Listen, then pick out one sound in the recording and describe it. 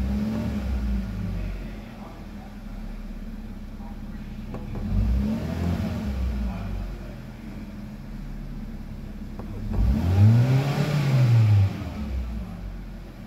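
A car engine revs up briefly and falls back, several times.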